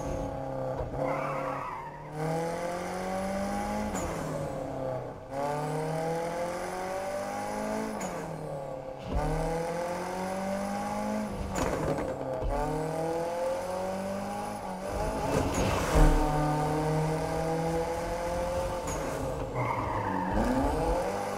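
A sports car engine revs hard, rising in pitch through each gear and dropping at each shift.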